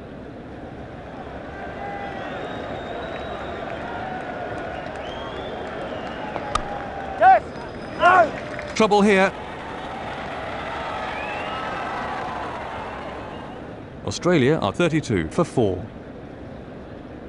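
A crowd murmurs and cheers steadily in a large stadium.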